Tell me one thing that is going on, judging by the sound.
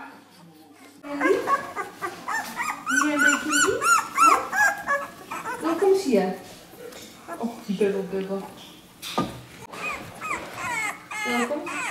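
Newborn puppies whimper and squeal loudly.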